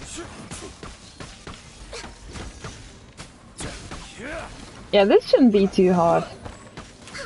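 Fast magical strikes crackle and whoosh in a video game battle.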